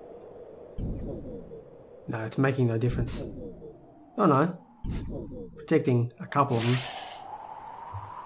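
A magic spell shimmers and whooshes.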